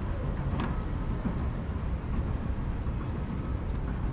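Footsteps tap on wooden decking.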